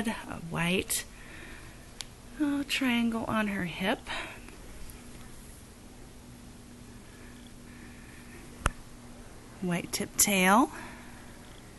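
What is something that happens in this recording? A newborn puppy squeals and cries in high, wavering yelps close by.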